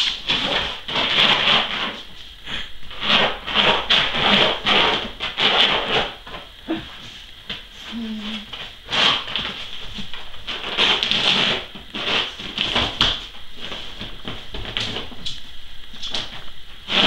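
A dog scratches and scrabbles at a rolled rug on a hard floor.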